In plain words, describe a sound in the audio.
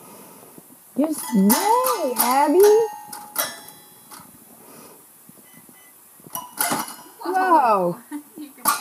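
A baby squeals and babbles loudly.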